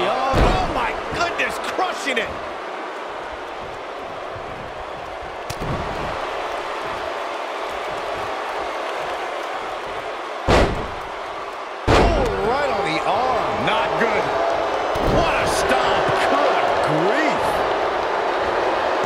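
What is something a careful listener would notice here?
A large crowd cheers steadily throughout, in a big arena.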